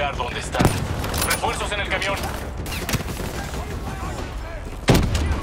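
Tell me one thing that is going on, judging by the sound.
Sharp gunshots ring out a few times.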